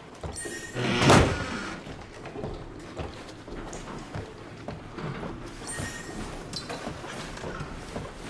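Footsteps thud slowly on wooden floorboards.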